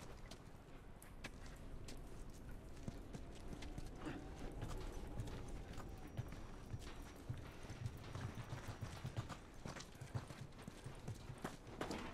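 Footsteps scuff over a gritty floor.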